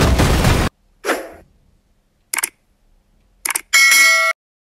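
A short chime and click sound several times.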